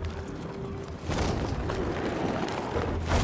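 A loud whoosh of air roars as a dive speeds up.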